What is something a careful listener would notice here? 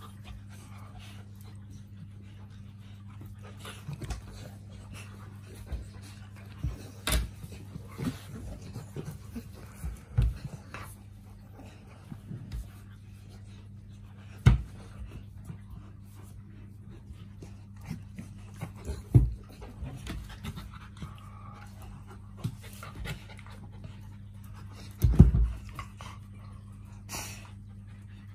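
Two dogs tussle and scuffle playfully close by.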